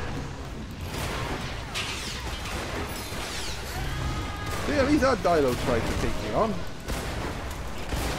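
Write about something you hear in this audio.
A shotgun fires in sharp blasts.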